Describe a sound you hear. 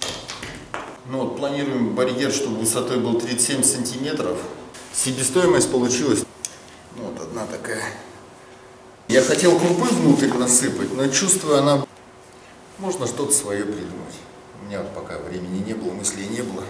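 A man talks calmly and steadily close by.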